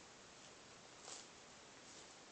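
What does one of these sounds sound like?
Paper rustles in a young girl's hands.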